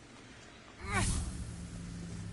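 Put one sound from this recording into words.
A magic rope snaps onto a boulder with a crackling zap.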